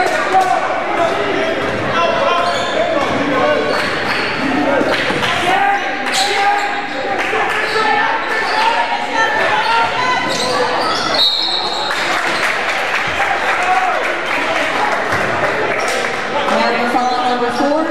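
Sneakers squeak sharply on the hardwood floor.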